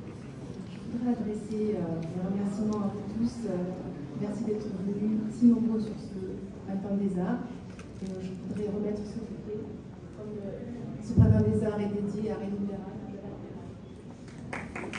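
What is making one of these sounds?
A woman speaks calmly into a microphone over loudspeakers in an echoing hall.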